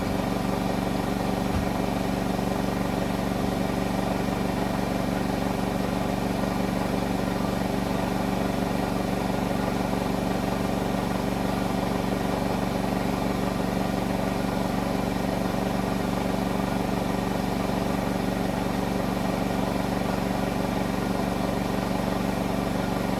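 A washing machine drum spins fast with a steady loud whirr and hum.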